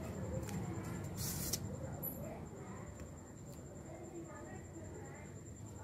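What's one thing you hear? A paper strip slides out of a card.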